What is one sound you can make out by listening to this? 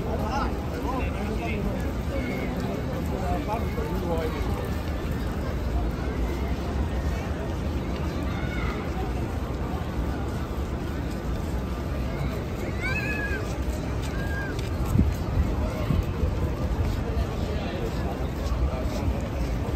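A crowd of people talks and murmurs all around outdoors.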